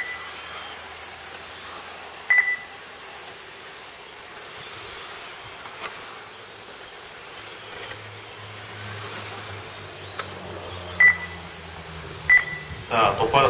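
A small electric model car whines at high pitch as it speeds up and slows down.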